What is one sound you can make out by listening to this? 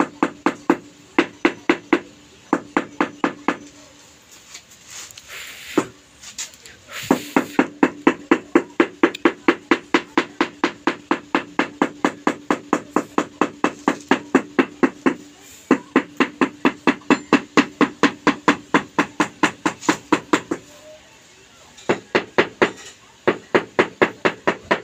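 A mallet taps rapidly and steadily on a floor tile.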